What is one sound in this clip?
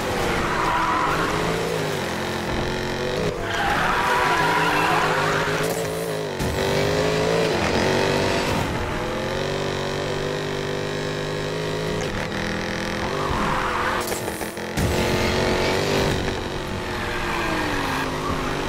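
A racing car engine roars and revs up and down.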